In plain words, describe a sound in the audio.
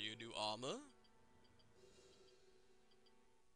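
Soft electronic menu blips sound now and then.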